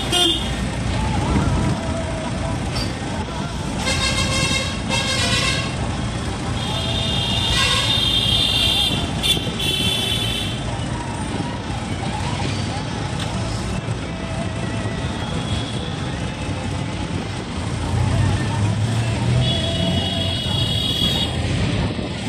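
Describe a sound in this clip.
A vehicle engine rumbles steadily while driving along a street.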